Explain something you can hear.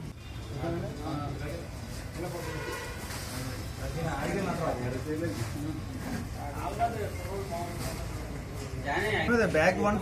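A man talks on a phone nearby.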